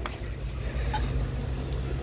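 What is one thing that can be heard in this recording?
A fingerprint scanner beeps.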